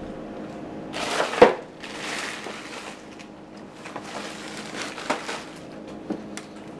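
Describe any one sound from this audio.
Frozen packages rustle and clatter.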